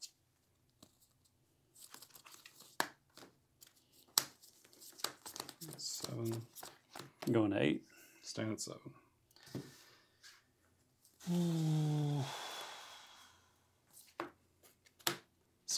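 Cards riffle and shuffle in a player's hands.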